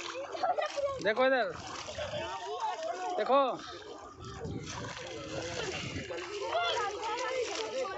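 Water splashes as people wade through shallow water.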